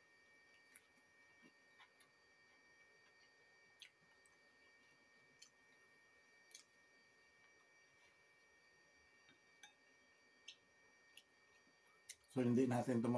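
A man chews food softly.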